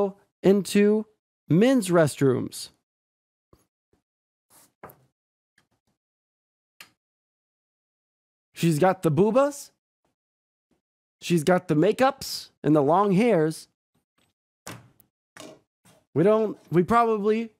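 A man talks with animation close to a microphone, in bursts with pauses.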